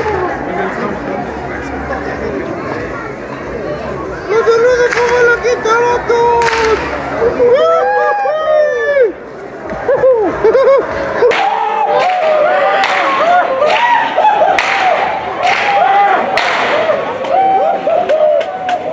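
A crowd of people calls out and chatters loudly.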